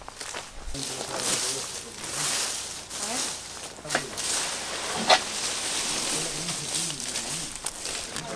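A rake scrapes over dry ground and leaves.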